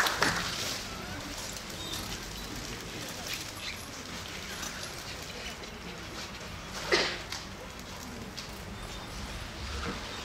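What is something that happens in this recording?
Dancers' footsteps patter lightly on a stage floor.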